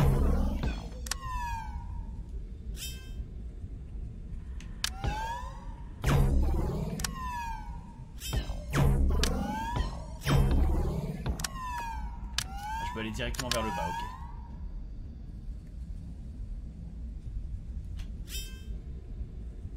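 Electronic blaster shots zap and whoosh in quick bursts.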